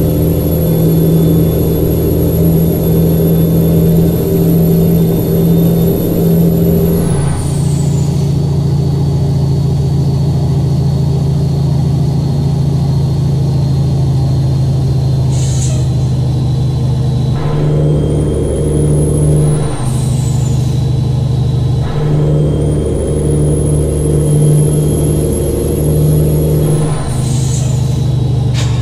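A turbo whistles high and then sighs away.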